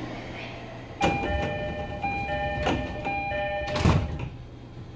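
A door-closing chime beeps in quick repeated tones.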